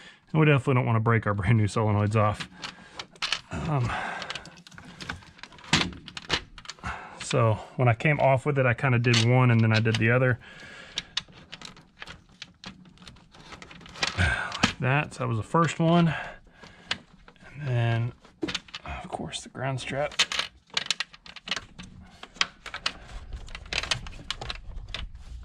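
Plastic and metal parts click and rattle under working hands.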